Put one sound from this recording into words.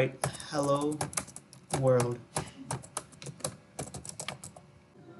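Keyboard keys click quickly as someone types.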